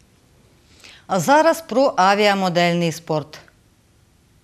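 A young woman reads out the news through a microphone.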